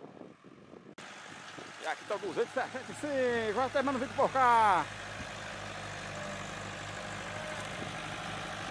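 A tractor engine rumbles close by and revs up.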